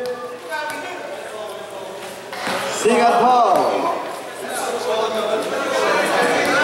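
A crowd of children shout and chatter in a large, echoing space.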